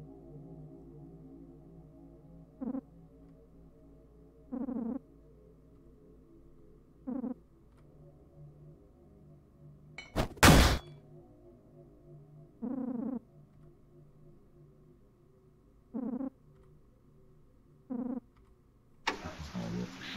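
A low, quiet game melody plays in the background.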